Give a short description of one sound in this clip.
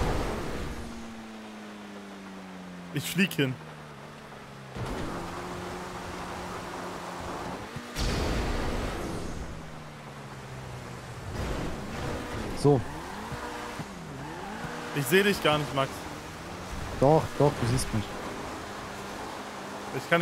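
A car engine drones and revs, shifting up and down in pitch.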